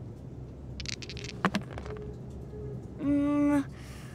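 Dice clatter onto a cardboard tray.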